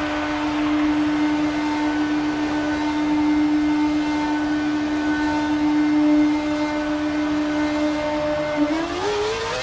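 A racing car engine hums at a steady pitch.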